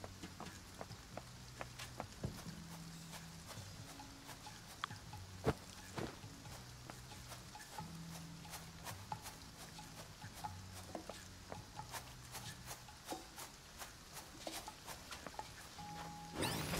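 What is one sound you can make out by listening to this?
Footsteps patter quickly on grass and stone.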